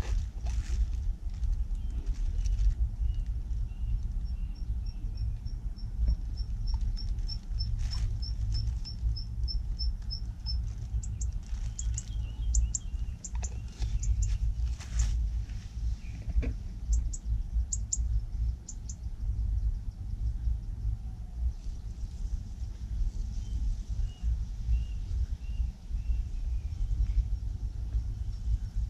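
Water laps and trickles gently in shallow mud.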